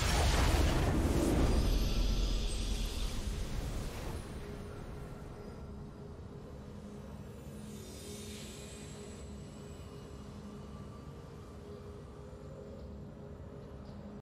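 Triumphant music plays softly.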